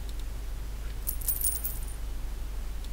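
Coins jingle briefly.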